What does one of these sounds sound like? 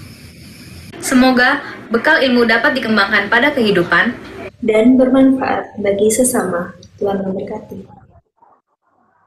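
A young woman speaks calmly through a microphone in an online call.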